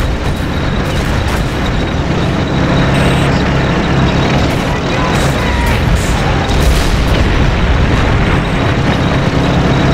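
Explosions boom in rapid bursts.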